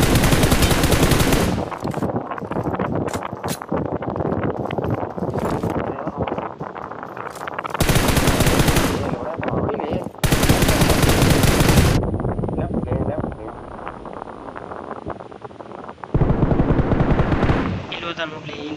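A sniper rifle fires loud single shots that echo.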